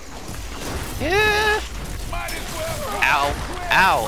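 An explosion bursts with a crackling roar.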